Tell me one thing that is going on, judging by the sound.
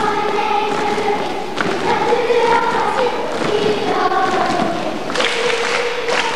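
A children's choir sings a melody in unison in a large echoing hall.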